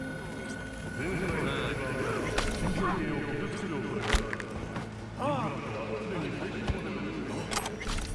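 A man grunts and groans in pain.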